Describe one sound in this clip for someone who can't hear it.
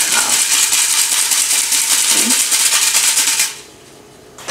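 A hand-cranked flour sifter rasps quickly and steadily.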